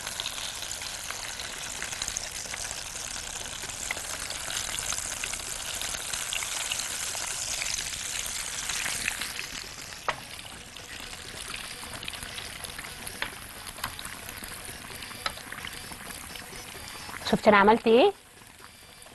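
Hot oil sizzles and bubbles steadily as food fries.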